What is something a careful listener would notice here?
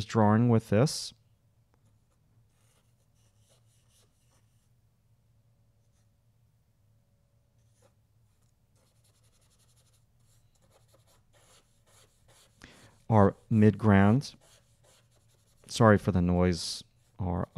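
A brush scratches softly on paper.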